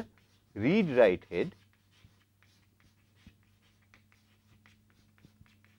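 Chalk taps and scratches faintly on a blackboard.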